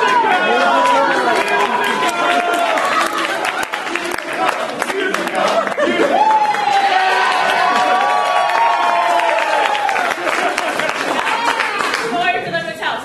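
Hands clap in quick rhythm.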